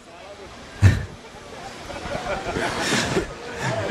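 A young man laughs.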